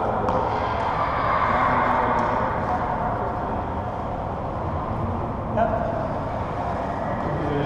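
Sneakers tread and squeak on a hardwood floor.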